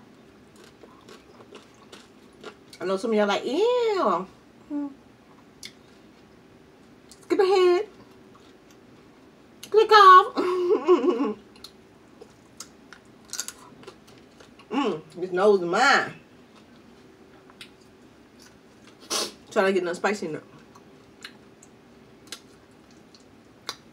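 A woman chews and smacks her lips loudly.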